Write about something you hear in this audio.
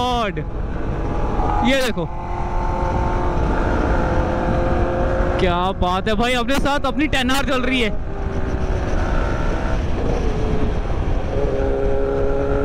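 A motorcycle engine drones close by, revving up and down as gears change.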